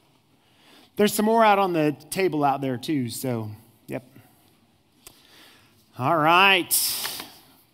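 A middle-aged man speaks with animation through a microphone in a large room.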